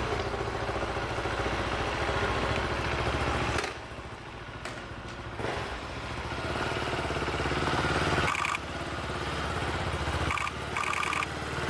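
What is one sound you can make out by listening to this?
A motorcycle engine rumbles and idles close by.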